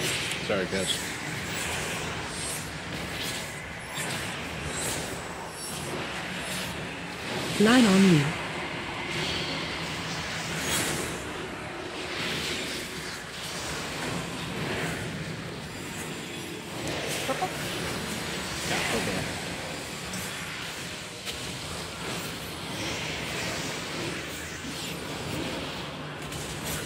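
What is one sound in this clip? Game spell effects whoosh and crackle in a busy battle.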